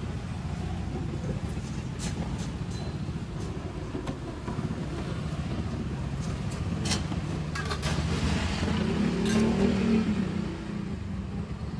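Traffic rumbles steadily along a nearby street.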